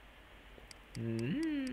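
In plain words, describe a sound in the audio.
A video game plays a short electronic tone.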